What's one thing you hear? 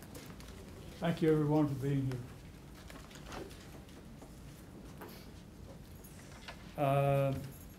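A man speaks calmly in a room, in short bursts.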